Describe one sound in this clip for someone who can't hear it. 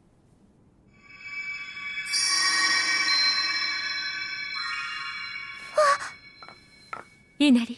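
A magical shimmering chime rings and fades.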